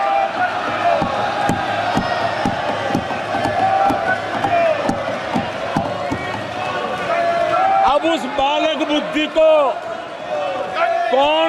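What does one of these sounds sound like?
A crowd of men chants slogans loudly in a large echoing hall.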